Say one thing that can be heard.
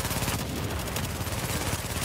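An explosion bursts.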